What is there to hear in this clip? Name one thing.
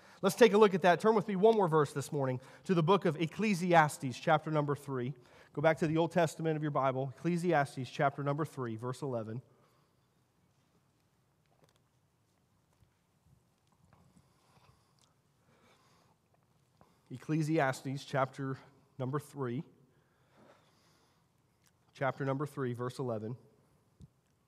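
A man speaks calmly over a microphone and loudspeakers in a large echoing hall, pausing between phrases.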